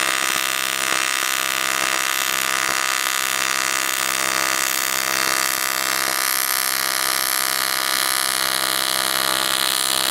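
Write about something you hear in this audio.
A welding torch hisses and buzzes steadily.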